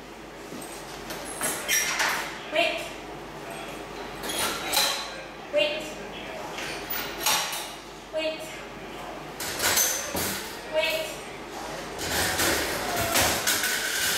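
Wire crate doors rattle and clank as they swing open.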